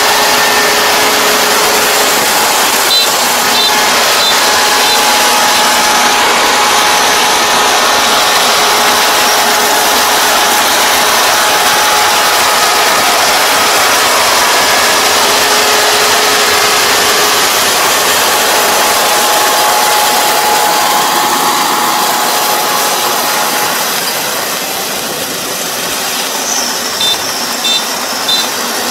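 A combine harvester engine roars up close, then grows fainter as the machine moves away.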